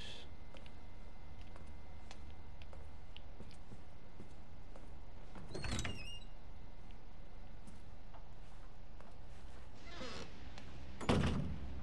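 Footsteps walk slowly across a wooden floor.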